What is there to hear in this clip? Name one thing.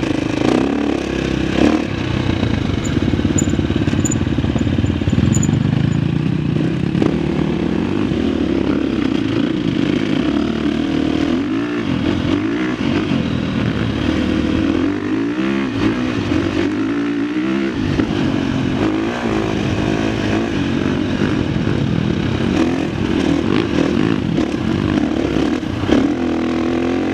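A dirt bike engine drones up close, revving up and down.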